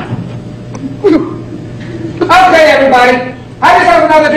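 An elderly woman sobs and wails loudly.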